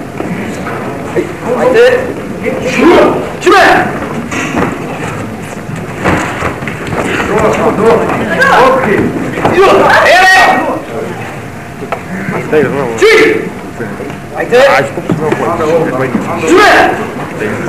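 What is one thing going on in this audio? A man shouts short, sharp commands in a large echoing hall.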